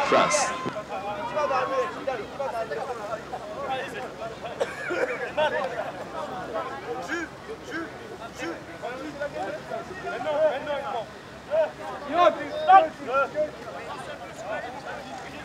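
Young men call out to each other on an open field.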